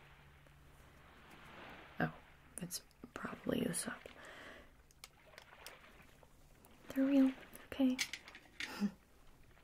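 Small metal trinkets click and tinkle in a woman's hands.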